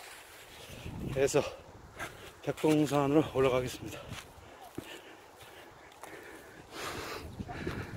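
Dry leaves crunch underfoot as someone walks.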